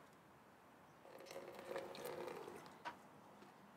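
Water trickles from a bottle into a watering can.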